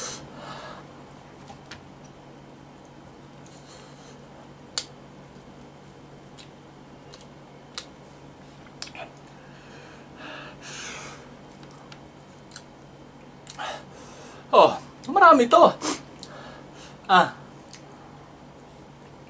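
A man chews and smacks noisily.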